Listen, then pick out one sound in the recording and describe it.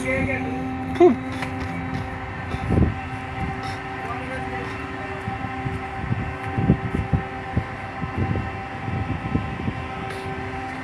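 Metal knocks and clanks on deck.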